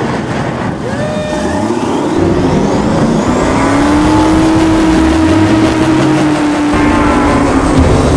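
Water sprays and splashes against a speeding boat.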